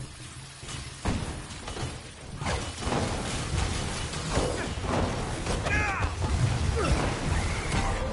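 Game energy blasts zap and crackle.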